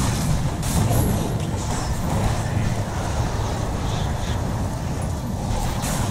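Magic spells whoosh and crackle in a game battle.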